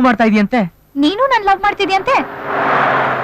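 A young woman speaks with concern.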